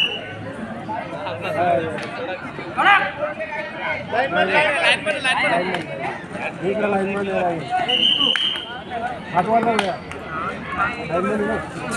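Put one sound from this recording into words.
Young men call out loudly to each other on the court.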